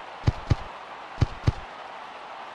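A game menu clicks as plays are picked.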